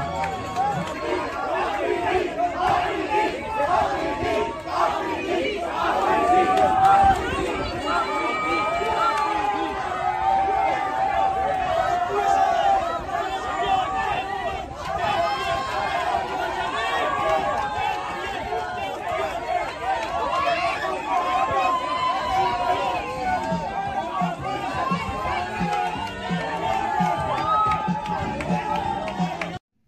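A large crowd cheers and shouts excitedly outdoors.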